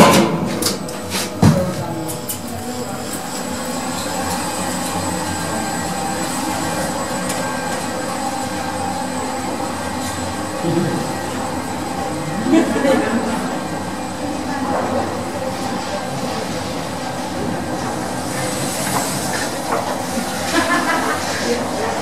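An elevator hums and rattles steadily as it travels through its shaft.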